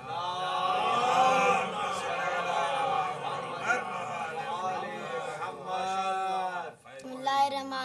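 An elderly man chants loudly through a microphone.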